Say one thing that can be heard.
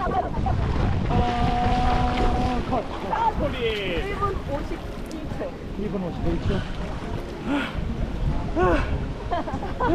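Water splashes as a man swims in a pool.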